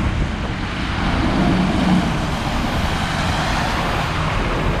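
A bus engine rumbles loudly as it passes close by.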